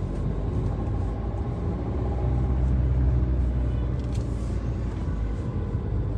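A car engine hums steadily from inside the car as it drives along a street.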